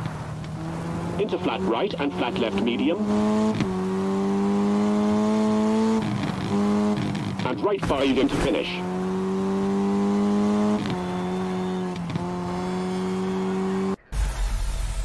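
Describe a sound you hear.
A rally car engine revs hard, rising in pitch and dropping with each gear change.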